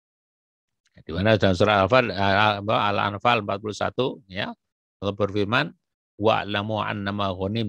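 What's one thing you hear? A man speaks steadily into a close microphone.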